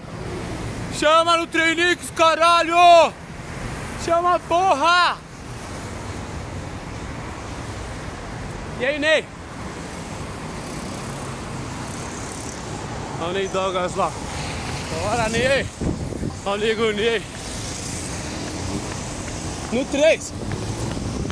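A man shouts and talks with excitement close to the microphone.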